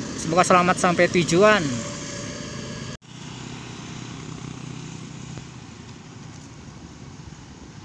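A motorcycle engine buzzes past.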